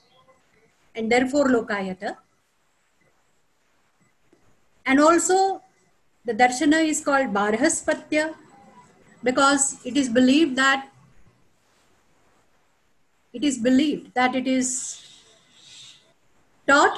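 An elderly woman speaks calmly, in short phrases with pauses, heard over an online call.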